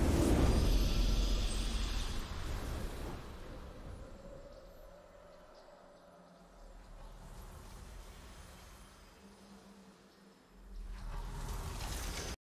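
A triumphant game fanfare swells softly.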